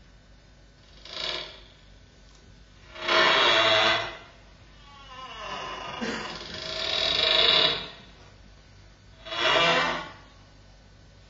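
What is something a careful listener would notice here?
Two accordions play short, loud bursts of chords separated by quiet pauses, echoing in a large hall.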